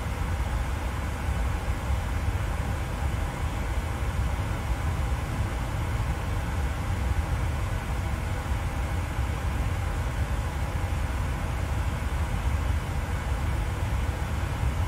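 Jet engines drone steadily with a low rumble.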